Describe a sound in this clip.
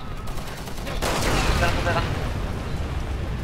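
A second explosion bursts with a loud rumbling roar.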